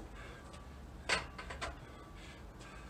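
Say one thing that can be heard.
A weight bar clanks as it is lifted off its rack.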